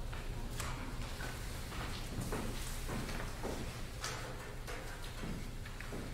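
High heels click on a wooden stage.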